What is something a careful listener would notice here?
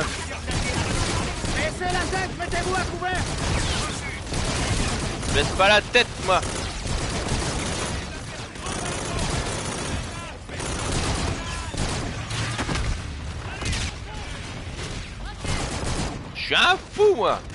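Rapid gunfire crackles and echoes.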